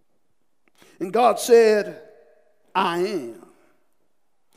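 A man speaks with emphasis into a microphone, his words ringing in a reverberant room.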